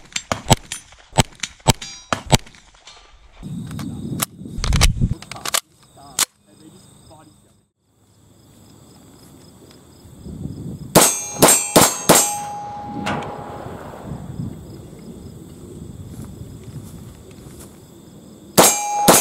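Gunshots crack in quick bursts outdoors.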